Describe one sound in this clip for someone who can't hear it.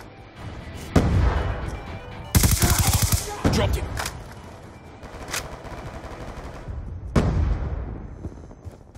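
Gunshots fire in rapid bursts with a booming echo.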